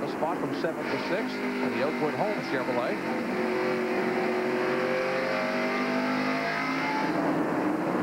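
A race car engine revs up and down close by, its pitch rising and falling.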